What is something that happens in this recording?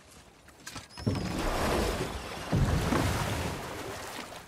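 A wooden boat scrapes and splashes as it is pushed into water.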